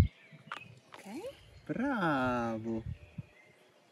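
A young animal bleats loudly close by.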